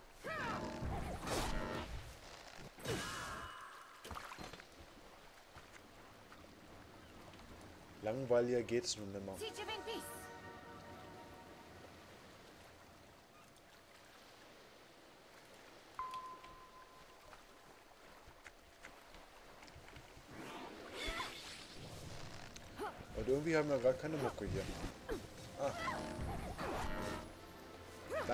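Magic spells and weapon strikes clash in a fight.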